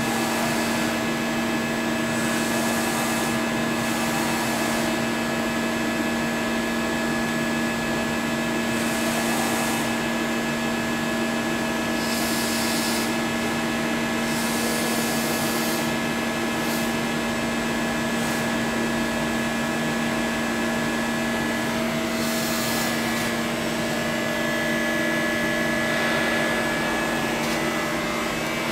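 A machine tool hums steadily with a constant whine.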